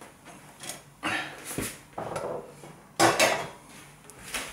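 A baking dish clatters down onto a metal wire rack.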